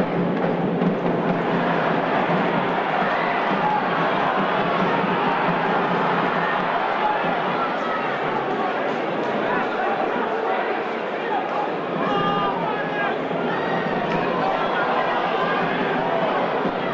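A large crowd roars steadily in an open stadium.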